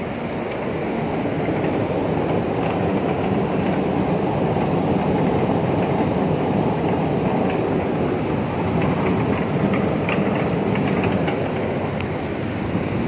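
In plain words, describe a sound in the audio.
Machinery hums with a steady low rumble.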